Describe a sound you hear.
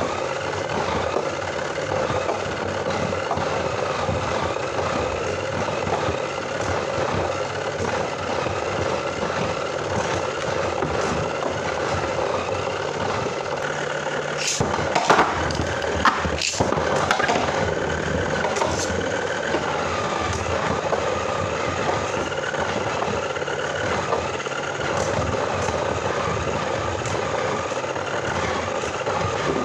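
Spinning tops whir steadily.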